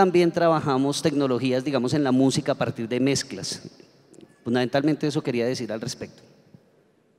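A man speaks steadily into a microphone over a loudspeaker.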